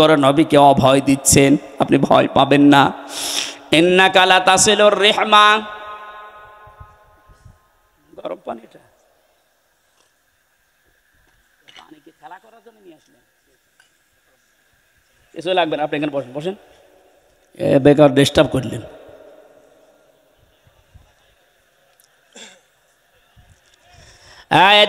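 A man preaches in a melodic, chanting voice through a microphone and loudspeakers, echoing in a large open space.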